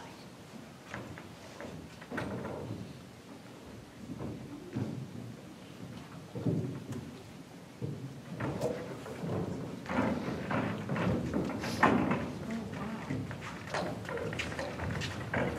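A young woman answers, speaking with feeling.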